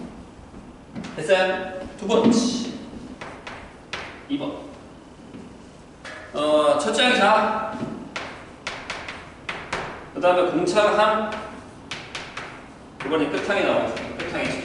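A young man speaks clearly and calmly, lecturing.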